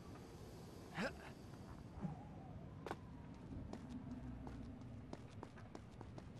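Quick footsteps run on stone.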